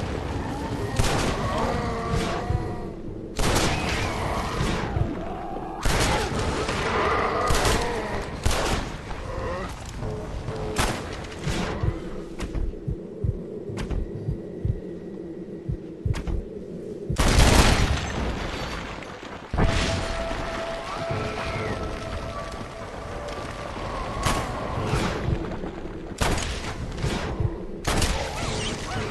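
Gunshots ring out again and again.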